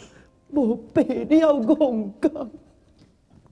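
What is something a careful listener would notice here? A woman sings in a high, wailing voice.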